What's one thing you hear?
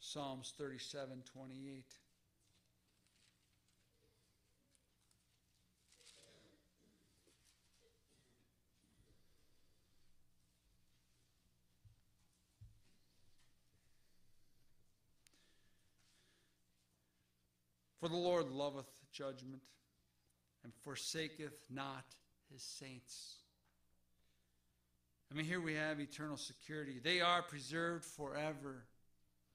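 A man speaks through a microphone in a pausing, preaching manner.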